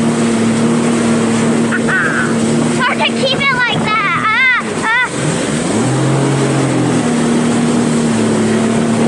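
Water rushes and sprays against a boat's hull.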